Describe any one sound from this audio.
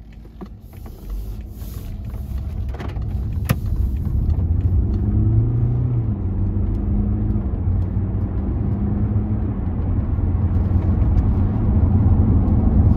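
A four-cylinder diesel car accelerates along a road.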